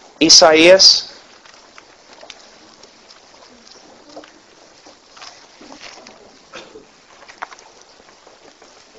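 A man speaks through a microphone, loudly at first and then softly.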